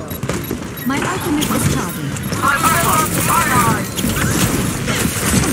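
Twin pistols fire in rapid bursts.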